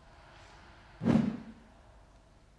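A golf club swishes through the air in a full swing.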